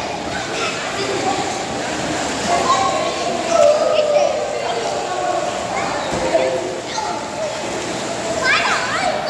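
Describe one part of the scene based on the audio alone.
Water splashes as children play in a pool.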